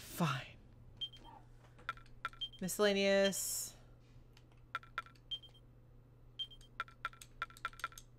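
Game menu sounds click and chime as options are selected.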